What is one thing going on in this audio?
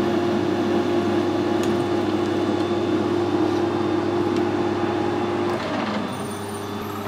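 A metal lathe hums steadily, then winds down and stops.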